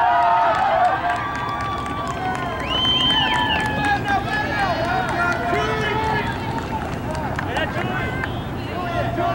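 Spectators nearby cheer and call out.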